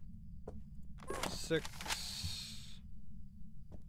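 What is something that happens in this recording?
A spray gun hisses in a sharp burst.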